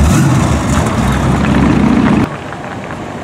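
A car engine rumbles loudly as it drives past.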